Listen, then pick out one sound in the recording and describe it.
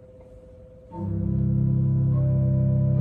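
A pipe organ plays a loud, sustained chord.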